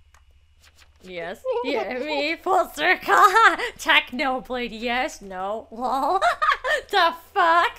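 A woman talks with animation, close to a microphone.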